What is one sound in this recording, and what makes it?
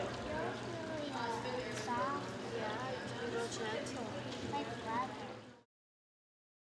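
A woman speaks gently and warmly close by.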